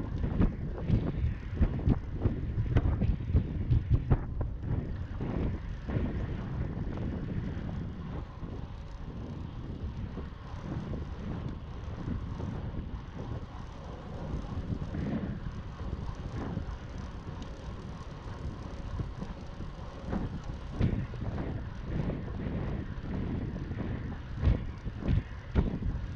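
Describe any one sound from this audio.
Bicycle tyres hum on a paved path.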